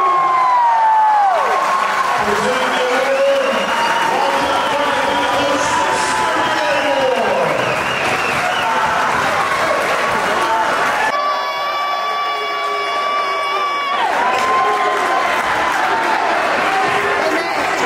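A crowd cheers and chatters loudly in a large echoing gym.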